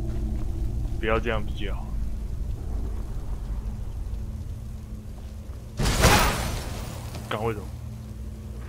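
A young man speaks briefly and quietly close by.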